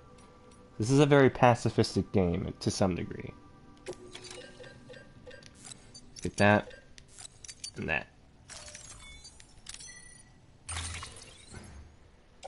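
Short electronic menu beeps and chimes sound now and then.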